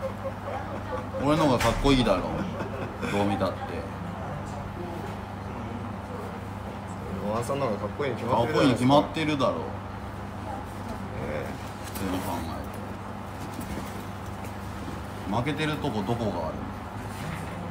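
A young man talks casually, close to a microphone.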